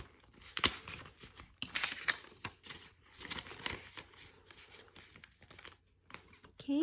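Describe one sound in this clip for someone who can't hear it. Plastic binder sleeves crinkle as pages are turned.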